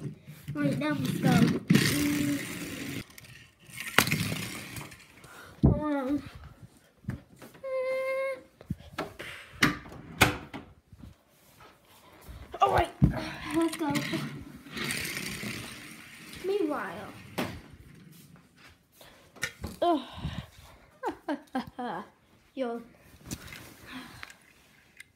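A small toy car rolls across the floor.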